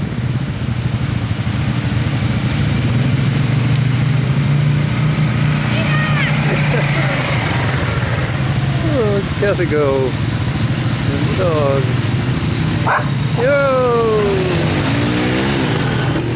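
Tyres splash through mud and water.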